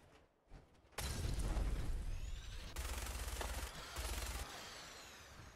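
A large explosion booms and rumbles close by.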